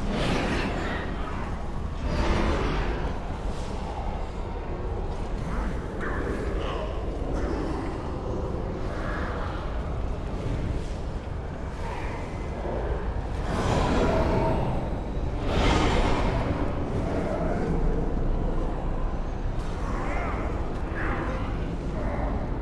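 Spells crackle and blast in a busy game battle.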